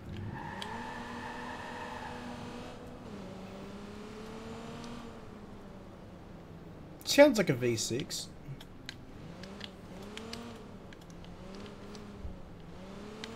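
A car engine hums and revs up and down.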